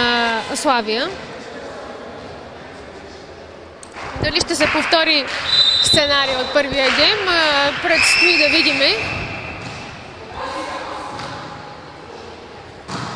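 A volleyball is struck with sharp slaps in an echoing hall.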